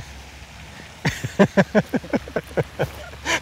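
A man laughs heartily nearby.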